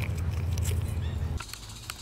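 A chipmunk chews on a peanut.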